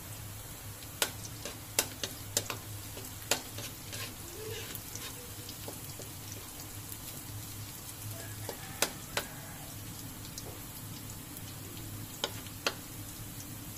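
A metal spoon clinks against a wok.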